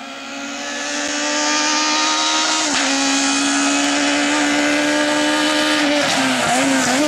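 A rally car engine roars loudly as it approaches at speed.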